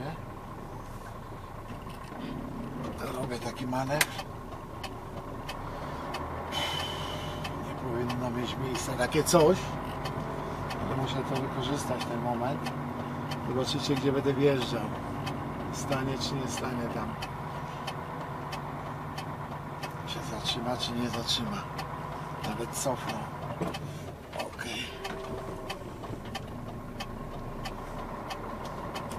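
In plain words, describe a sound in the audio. A vehicle engine hums steadily from inside while driving slowly.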